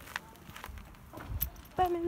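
A horse's hooves clop slowly on dirt.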